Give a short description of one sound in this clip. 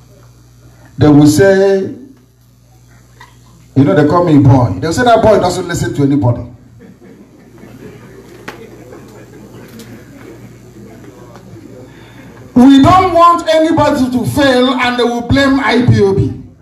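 A man speaks loudly through a microphone in a large echoing hall.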